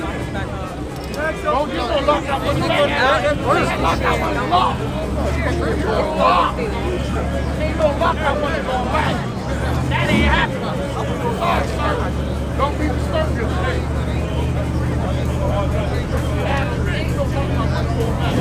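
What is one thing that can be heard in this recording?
A crowd of people chatters and shouts loudly outdoors.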